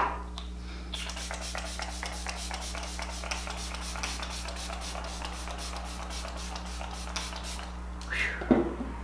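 A spray bottle mists in quick short bursts.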